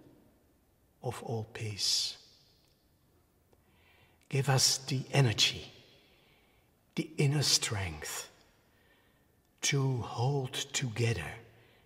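An elderly man speaks calmly and slowly, close to a microphone, with pauses between phrases.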